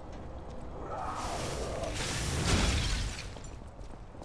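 A burst of flame roars.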